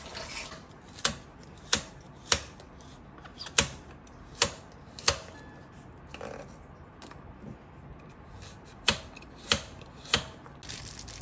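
A knife chops sharply on a wooden board.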